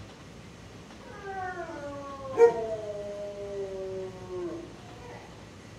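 A dog whimpers in a long, falling whine.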